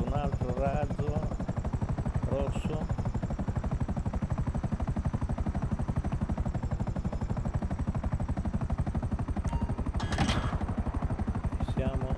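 A helicopter's rotor blades thump rapidly and steadily.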